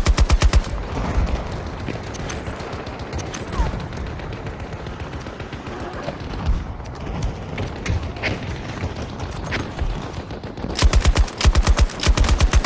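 A light machine gun fires in rapid bursts.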